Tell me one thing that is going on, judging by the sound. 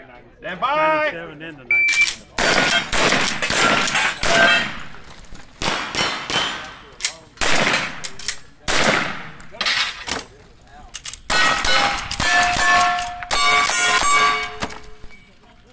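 A rifle fires repeated sharp shots outdoors.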